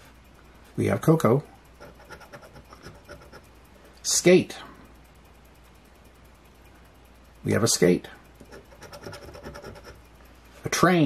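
A coin scratches rapidly across a paper ticket.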